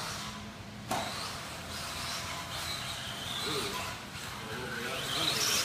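A small electric model car whines as it races over a dirt track.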